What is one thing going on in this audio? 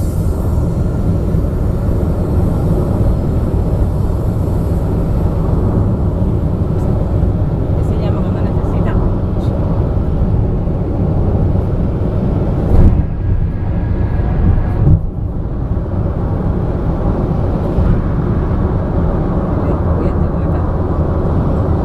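Wind buffets loudly past an open car window.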